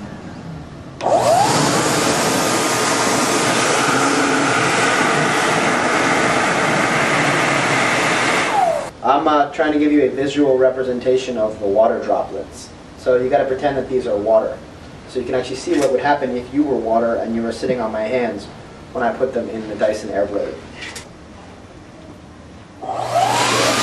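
A hand dryer blows with a loud, steady roar.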